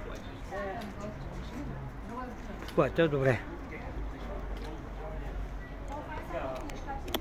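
People chatter in a busy outdoor street.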